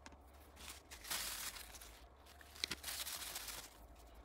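A paper tissue rustles and crinkles close by.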